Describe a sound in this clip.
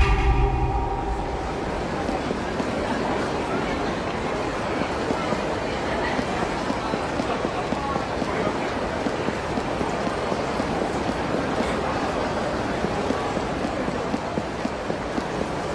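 A busy city street murmurs steadily in the background.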